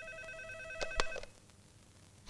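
A phone rings briefly.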